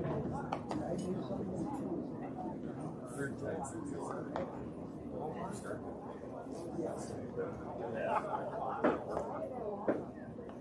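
A crowd of spectators murmurs and chatters outdoors in the distance.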